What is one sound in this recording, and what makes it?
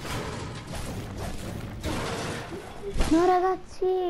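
Game building pieces clatter and thud in quick succession.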